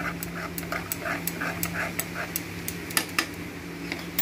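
A metal spoon clinks rapidly against a small pan.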